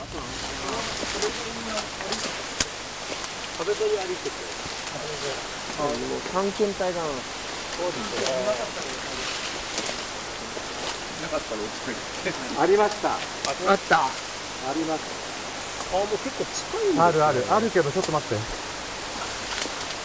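A man speaks quietly in short phrases, close by.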